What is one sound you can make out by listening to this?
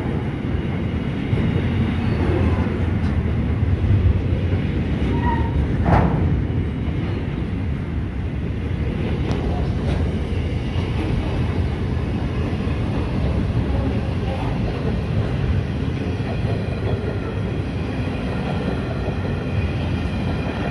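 Train wheels clatter and squeal over the rails.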